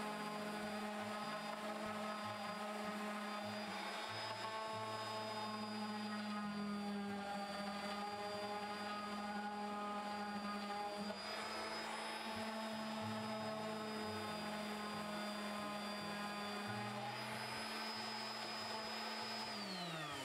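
An electric sander whirs steadily against wood and winds down at the end.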